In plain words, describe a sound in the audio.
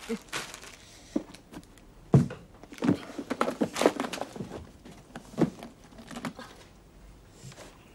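A case knocks and thumps as it is handled.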